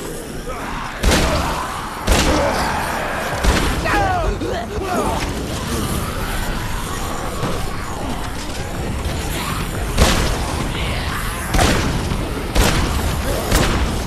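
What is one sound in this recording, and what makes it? Heavy blows thud against bodies in quick succession.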